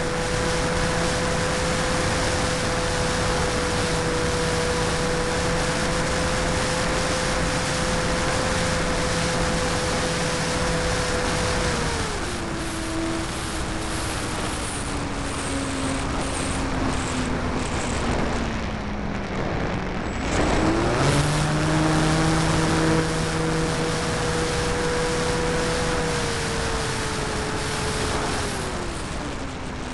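A model plane's electric motor whines steadily, dropping in pitch and rising again.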